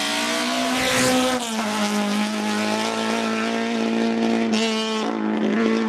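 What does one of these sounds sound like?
A rally car engine roars at high revs as the car speeds past.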